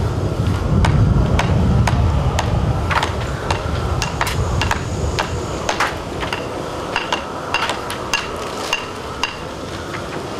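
Metal trowels tap and scrape against a concrete wall.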